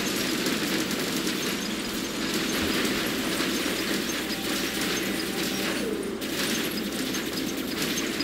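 Heavy metal footsteps thud as a large robot walks.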